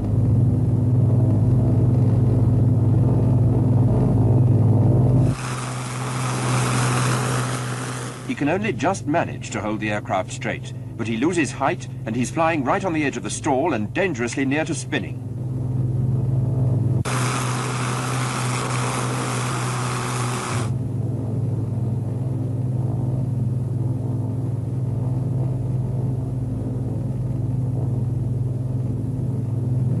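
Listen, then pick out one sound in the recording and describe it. Propeller engines drone steadily in flight.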